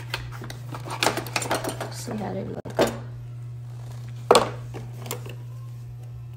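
Plastic parts click and clatter as hands handle them.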